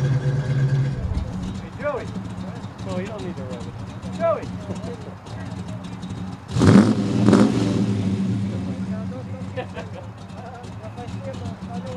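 A second car's engine idles with a low steady hum.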